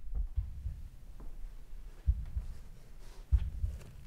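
A cardboard box and plastic wrap rustle as they are handled.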